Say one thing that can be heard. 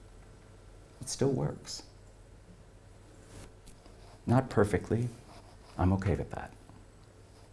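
A middle-aged man speaks calmly into a microphone in short phrases with pauses, heard through a loudspeaker in a room.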